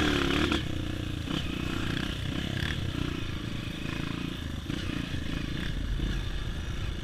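A dirt bike engine buzzes steadily up close as it rides over rough ground.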